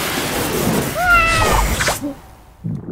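A man speaks in a goofy, cartoonish voice.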